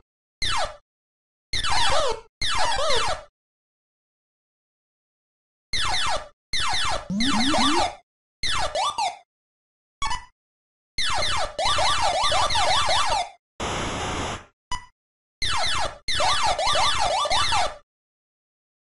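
Electronic arcade game sounds swoop and bleep in short bursts.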